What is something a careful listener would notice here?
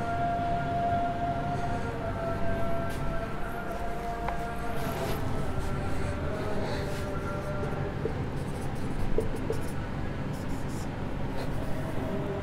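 A man speaks calmly, as if teaching.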